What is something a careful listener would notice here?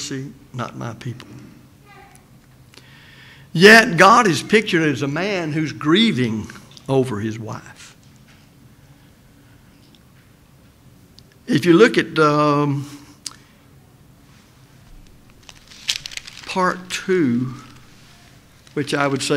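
An elderly man speaks calmly into a microphone in a large room, pausing often.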